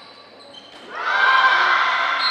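A crowd cheers loudly in an echoing hall.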